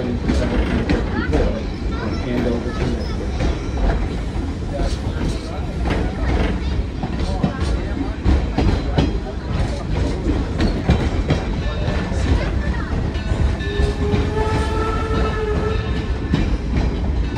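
A vehicle engine rumbles steadily while riding along.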